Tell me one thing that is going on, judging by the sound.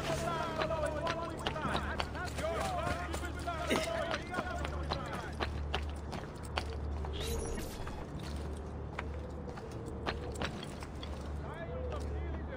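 Footsteps clatter over roof tiles.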